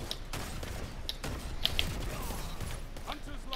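An explosion bursts nearby.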